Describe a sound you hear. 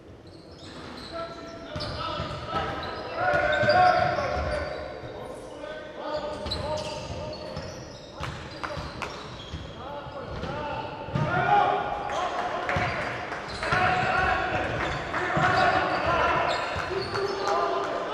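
Sneakers squeak on a court as players run.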